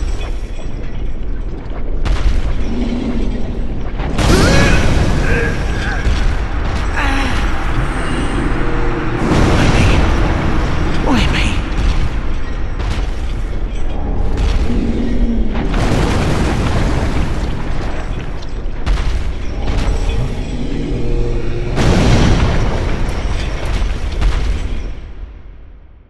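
Heavy blows crash and thud close by, with a deep rumble.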